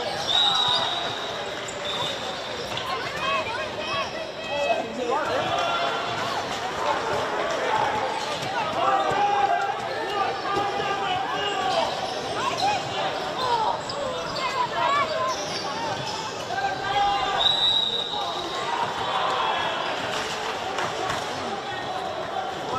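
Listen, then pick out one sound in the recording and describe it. Players shout to each other across an open field at a distance.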